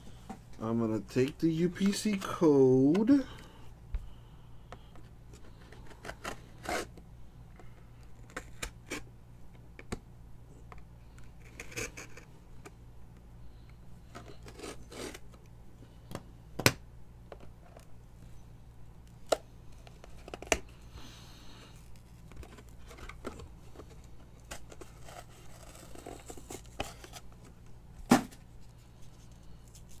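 Cards rustle and tap as hands handle them close by.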